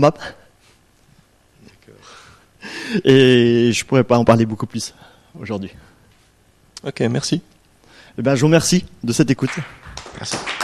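A man speaks into a microphone in an echoing hall.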